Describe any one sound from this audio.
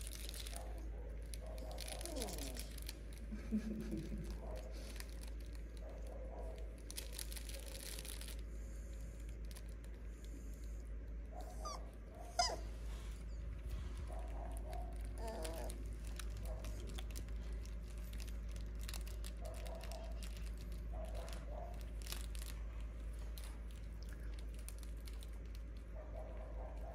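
Small puppies whimper and squeak softly.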